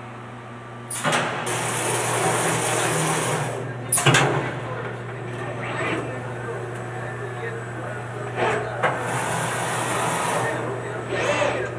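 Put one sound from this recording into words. A cutting tool hisses loudly in short bursts.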